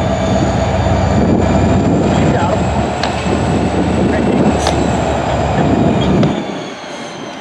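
A locomotive's engines rev up.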